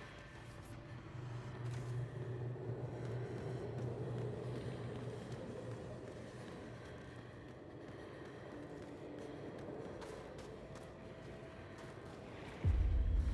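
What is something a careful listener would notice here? Footsteps crunch on icy snow at a quick running pace.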